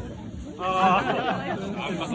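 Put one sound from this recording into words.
A man speaks cheerfully close by.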